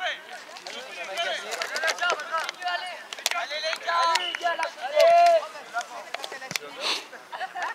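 Young boys shout and call out to each other across an open field.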